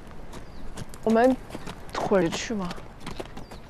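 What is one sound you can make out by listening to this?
A young woman speaks lightly nearby.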